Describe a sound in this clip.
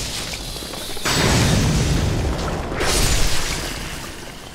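A burst of fire roars and crackles.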